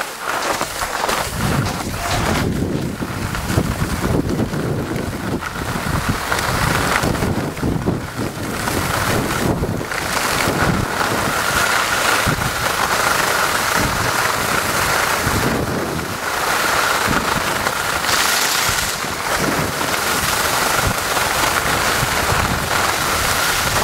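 Skis scrape and carve across hard snow.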